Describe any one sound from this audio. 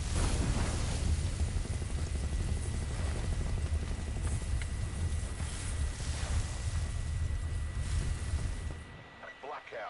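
A loud, deep rumble of battle and gunfire fills the air.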